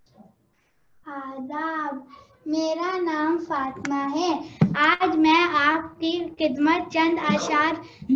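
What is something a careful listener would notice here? A young boy speaks loudly and with animation, close by.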